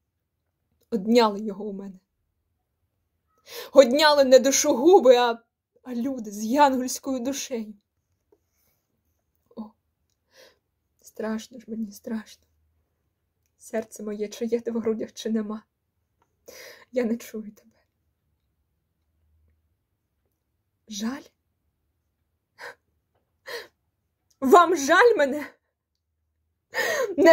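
A young woman speaks close up, with expression, in short bursts.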